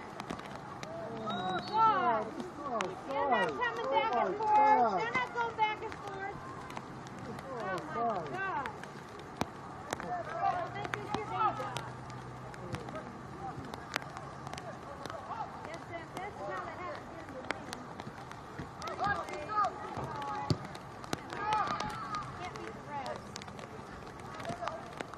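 Young players shout and call to each other across an open field, some distance away.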